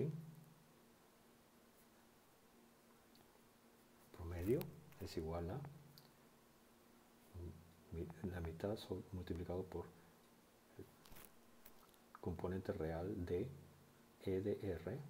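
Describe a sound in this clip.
A marker pen scratches softly across paper.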